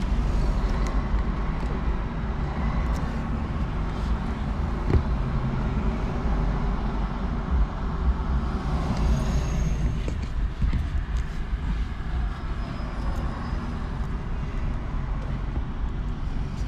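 A car engine hums steadily from inside the cabin as the car rolls slowly forward.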